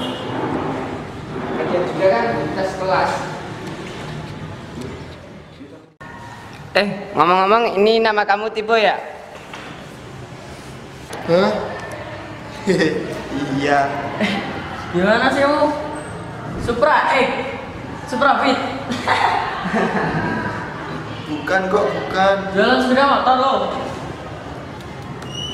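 Young men talk and joke with each other close by.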